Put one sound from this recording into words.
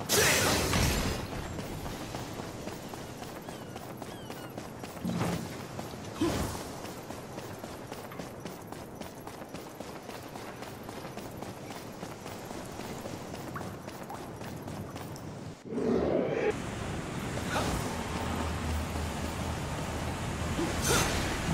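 Footsteps run quickly across planks and stone.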